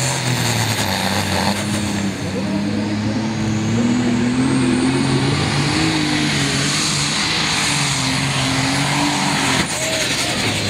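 A tractor engine roars loudly up close, its pitch climbing and wavering under heavy strain.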